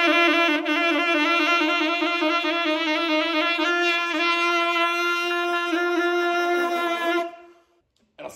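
A saxophone plays a loud, wavering melody up close.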